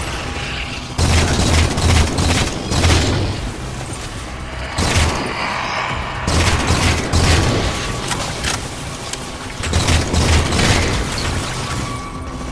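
A rifle fires in rapid bursts with booming shots.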